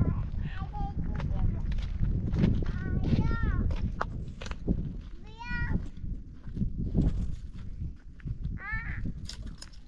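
Footsteps crunch on dry, stony ground.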